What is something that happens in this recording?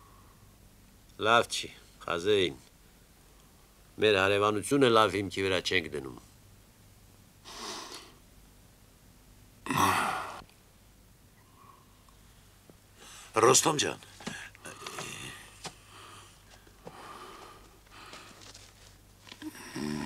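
Several men talk with one another.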